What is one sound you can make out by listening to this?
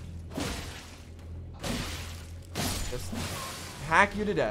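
Sword strikes whoosh and thud.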